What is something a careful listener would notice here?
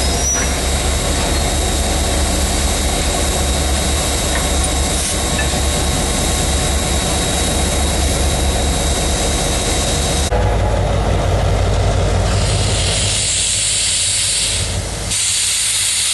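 A diesel locomotive engine rumbles steadily close by.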